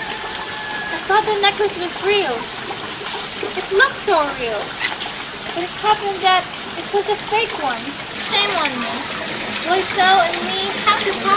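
A young woman sings a melody.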